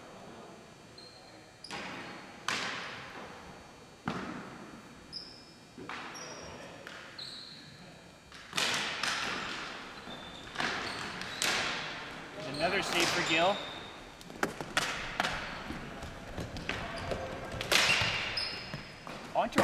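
Shoes squeak on a hard floor.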